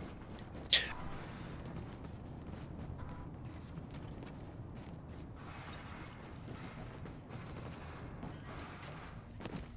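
Footsteps thud on wooden boards and metal stairs.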